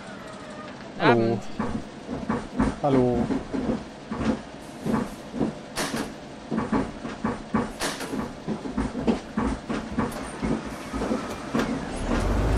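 Footsteps clatter on a bus floor.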